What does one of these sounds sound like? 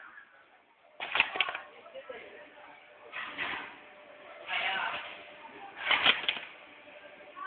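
A machine hisses and clunks in short bursts.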